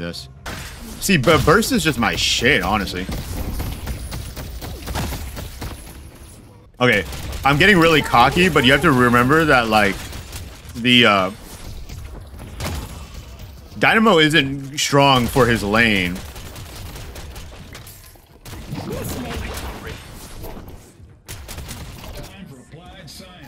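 Gunfire rattles from a video game.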